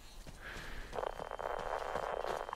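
Footsteps crunch on snow and gravel.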